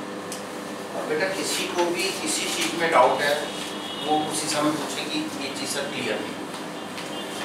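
A middle-aged man speaks aloud to a room, as if teaching.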